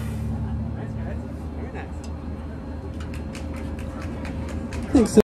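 A drummer taps cymbals in a steady beat.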